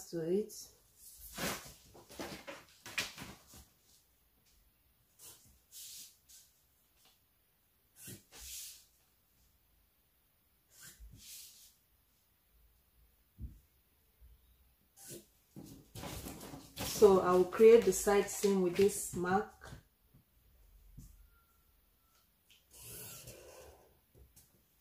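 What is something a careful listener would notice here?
A plastic ruler slides and taps on paper.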